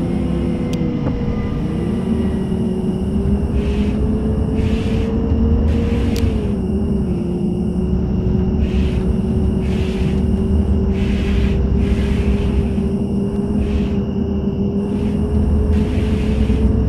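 A bus engine hums steadily, its pitch shifting slightly with speed.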